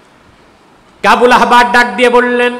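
A man chants loudly in a long, sung voice through a microphone.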